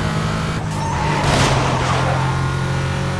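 Tyres screech through a sharp bend.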